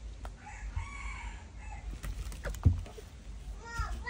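A wicker basket knocks and tips over onto the ground.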